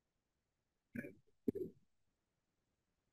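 A man speaks briefly and calmly through an online call.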